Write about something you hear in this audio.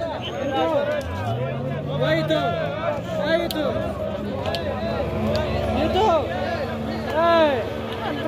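A motorboat engine drones and rises in pitch as the boat speeds across the water.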